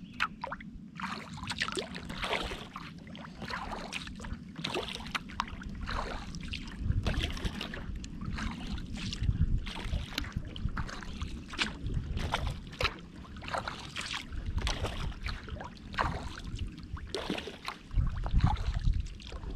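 Water laps gently against a kayak's hull.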